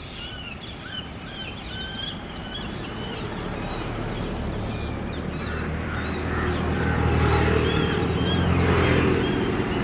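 Bird wings flap and beat against the ground.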